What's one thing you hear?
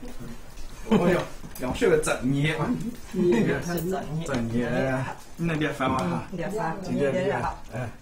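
A woman speaks and laughs nearby.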